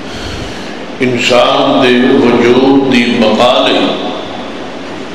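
A man speaks loudly and forcefully into a microphone, heard through a loudspeaker in an echoing hall.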